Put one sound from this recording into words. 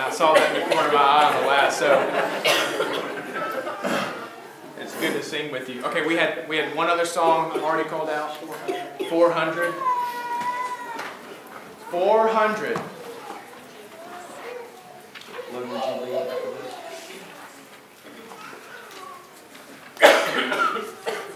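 A man speaks with animation to a gathering, heard in a room with some echo.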